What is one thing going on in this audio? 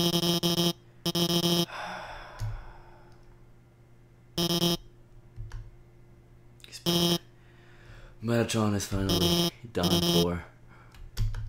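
Short bursts of electronic beeping chatter play.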